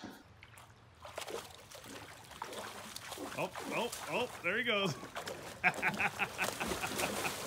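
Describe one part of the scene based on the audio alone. A dog splashes about in shallow water.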